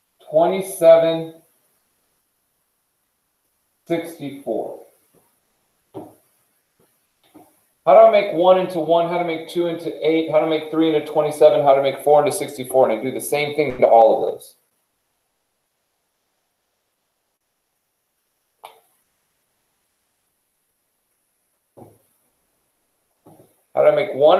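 A man speaks in a calm, explaining voice, close by.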